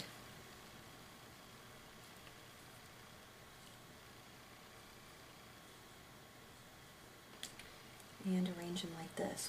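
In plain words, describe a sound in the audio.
Paper crinkles softly as it is folded by hand.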